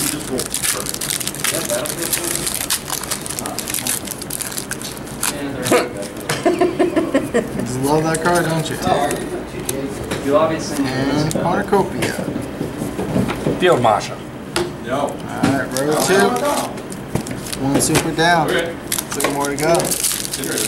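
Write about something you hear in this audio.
A foil wrapper crinkles and rustles as it is torn open.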